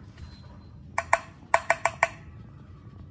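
Fingernails tap a ceramic plate with short, ringing clinks.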